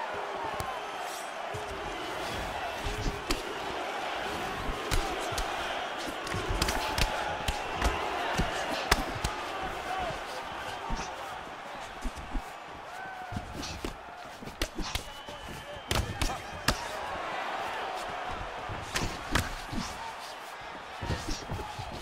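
A large crowd roars and murmurs steadily.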